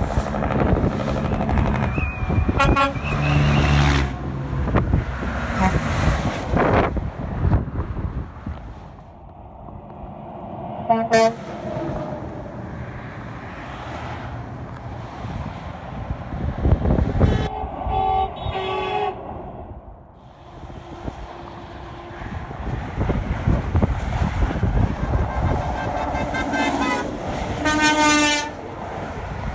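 A semi truck rumbles by close underneath.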